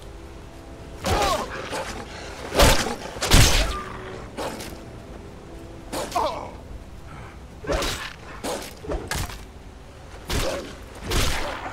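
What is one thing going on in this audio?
A blade strikes flesh with heavy thuds.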